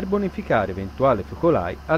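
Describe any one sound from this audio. Water hisses from a fire hose.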